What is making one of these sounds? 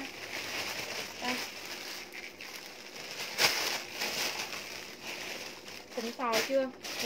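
Denim fabric rustles and flaps as it is handled.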